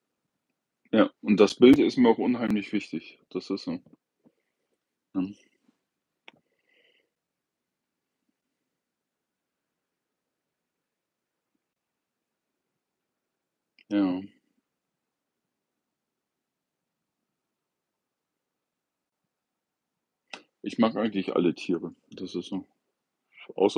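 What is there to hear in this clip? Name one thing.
An older man speaks calmly and close by, in short bursts with long pauses.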